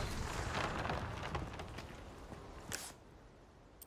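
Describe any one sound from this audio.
A heavy wooden gate scrapes open.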